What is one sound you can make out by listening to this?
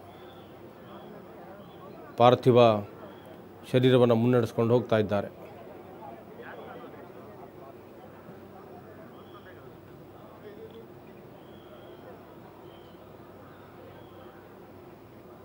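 A crowd murmurs outdoors.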